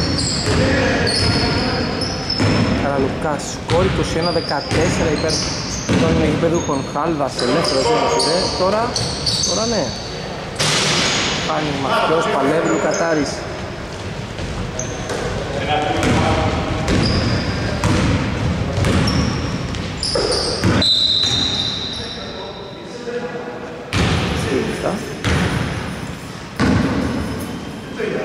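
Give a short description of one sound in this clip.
Men shout and call out to each other in a large echoing hall.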